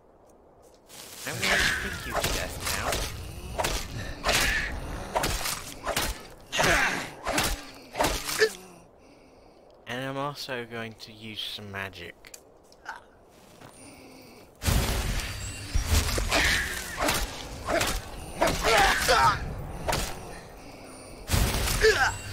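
Magic flames roar and crackle in bursts.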